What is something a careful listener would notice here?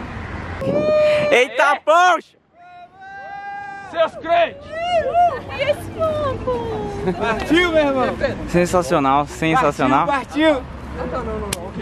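A group of young men and women laugh and chatter outdoors.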